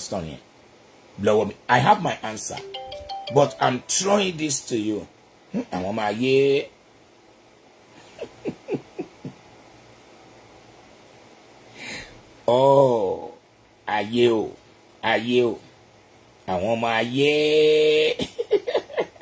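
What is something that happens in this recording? An older man speaks animatedly and close by.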